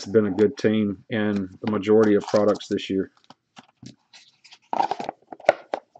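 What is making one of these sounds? Cardboard rustles as a box is handled.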